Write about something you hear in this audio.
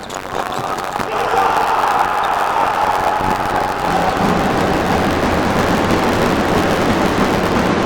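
A crowd cheers loudly and keeps roaring in a large echoing hall.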